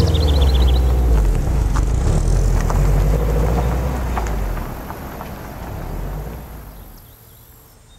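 Tyres crunch over a rough road.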